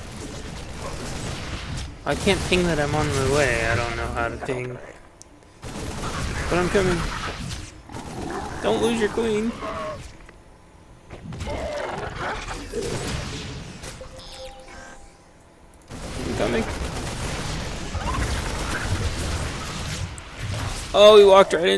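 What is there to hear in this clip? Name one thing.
Laser weapons zap in short bursts during a battle.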